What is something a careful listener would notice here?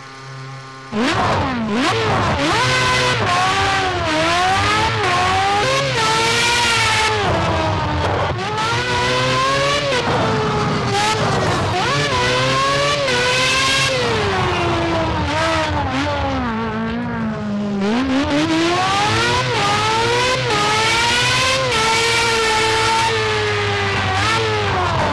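An open-wheel formula racing car engine revs high, its pitch climbing and dropping through gear changes.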